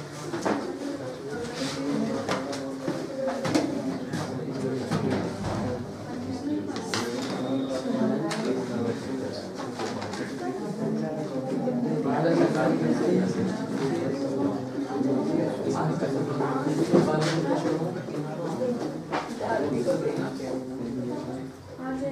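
A young man talks steadily, explaining.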